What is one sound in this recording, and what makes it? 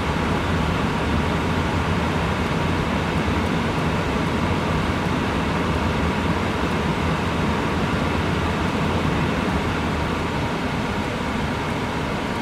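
A machine hums and rumbles steadily close by.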